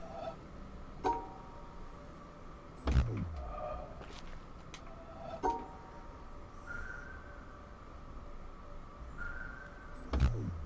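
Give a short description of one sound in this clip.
Short electronic chimes ring out.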